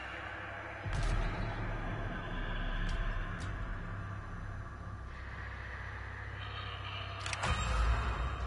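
Short clicks sound as a menu selection moves.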